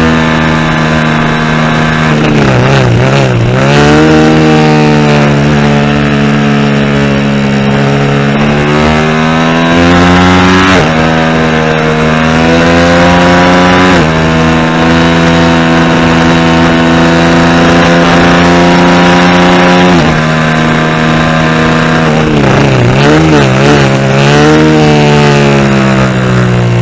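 A motorcycle engine roars loudly at high revs, rising in pitch through the gears and dropping sharply at each shift.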